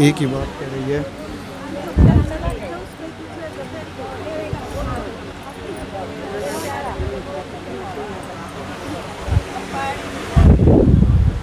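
Several women murmur and talk softly nearby.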